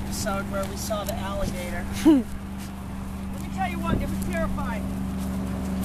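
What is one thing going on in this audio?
A woman calls out loudly to dogs nearby.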